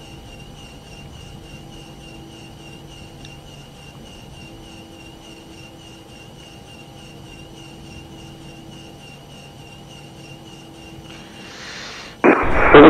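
Rain patters on a windscreen.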